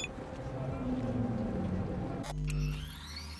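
Busy game ambience rumbles and hums.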